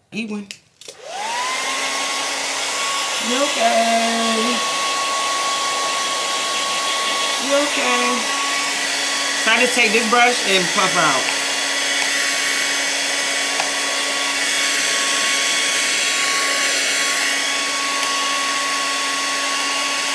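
A hair dryer blows with a steady whir.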